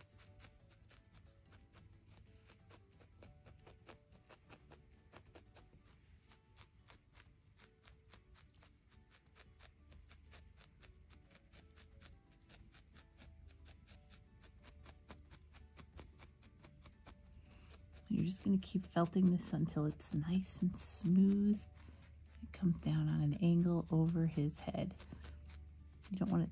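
A felting needle pokes rapidly into wool with soft, quick taps.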